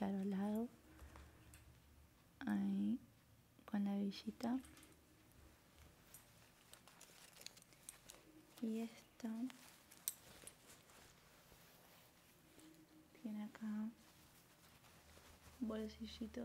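A young woman talks calmly into a nearby microphone, in short bursts.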